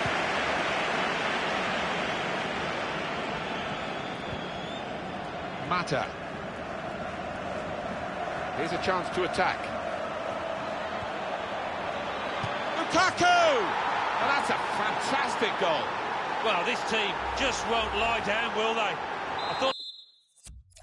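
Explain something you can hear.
A large stadium crowd roars steadily, swelling louder for a while before cutting off.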